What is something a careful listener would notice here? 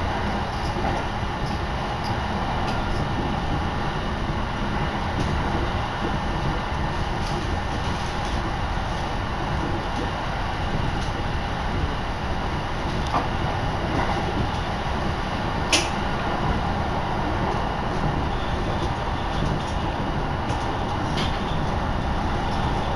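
Strong wind roars and buffets steadily.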